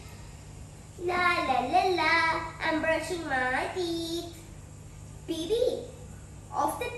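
A young girl speaks with animation close by.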